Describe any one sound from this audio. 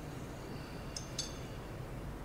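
A spoon clinks against a small bowl.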